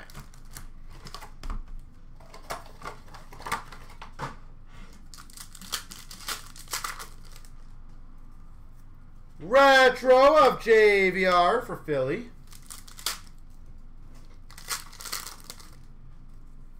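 Hard plastic card cases clatter and click as they are handled and stacked.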